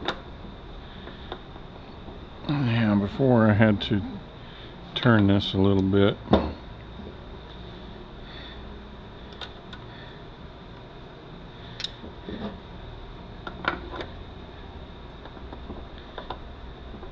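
Plastic connectors click and rattle as hands handle them.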